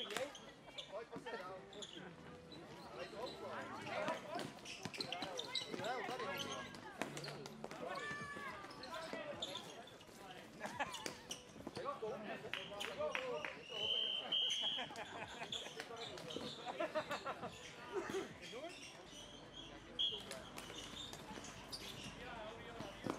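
Plastic sticks clack against a ball and the floor.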